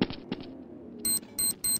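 An electronic keypad beeps a few times.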